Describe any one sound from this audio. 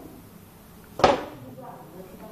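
A plastic bowl knocks against a table.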